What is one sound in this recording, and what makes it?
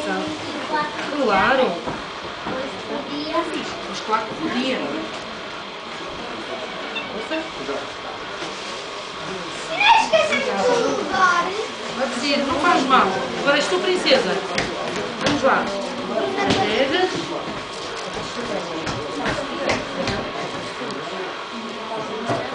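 Children chatter and call out.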